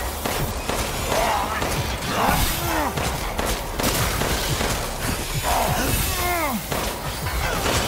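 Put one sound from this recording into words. A monster growls and roars.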